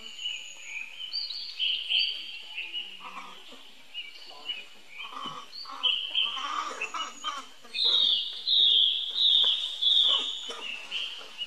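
Young monkeys squeak and squeal shrilly.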